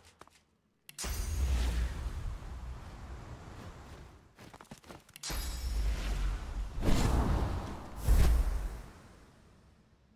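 A spell bursts with a deep rumbling whoosh.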